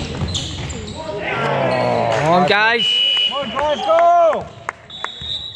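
Young men shout across an echoing hall.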